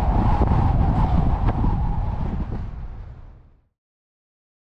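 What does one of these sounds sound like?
Tyres hum on a paved road, then fade away.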